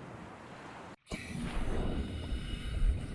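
A swimmer dives back under the water with a splash.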